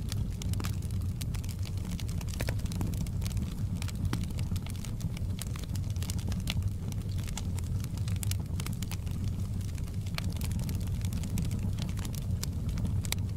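Flames roar with a low, steady rumble.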